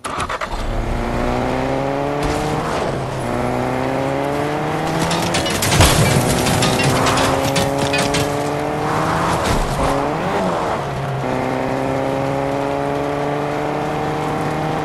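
A car engine revs up and shifts gears again and again.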